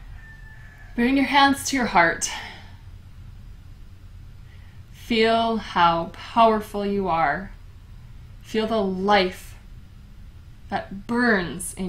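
A young woman speaks calmly and softly nearby, with pauses between phrases.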